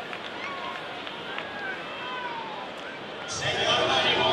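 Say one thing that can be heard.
A man speaks calmly over a stadium loudspeaker, echoing outdoors.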